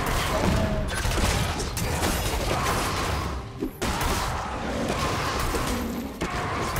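Game combat effects whoosh and clash.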